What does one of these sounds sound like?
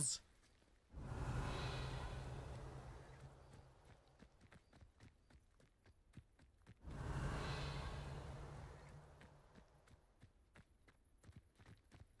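A magic spell bursts with a shimmering whoosh that slowly fades.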